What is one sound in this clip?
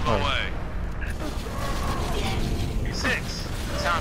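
A plasma gun fires rapid bursts.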